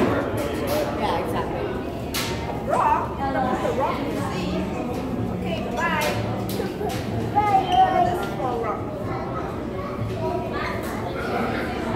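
Children and adults chatter in the background of an echoing room.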